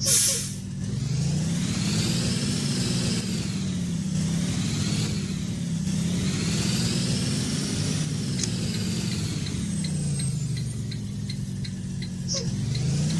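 A bus engine revs up and down as the bus drives.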